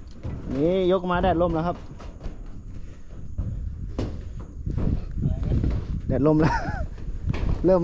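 Footsteps thud on a metal roof.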